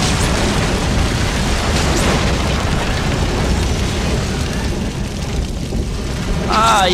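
A fire roars with a low, steady rumble.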